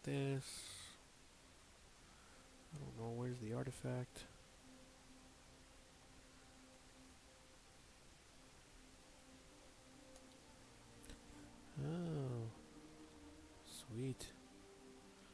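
A man speaks calmly and closely into a microphone, in short bursts.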